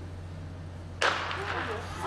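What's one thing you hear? A starting pistol fires with a sharp crack.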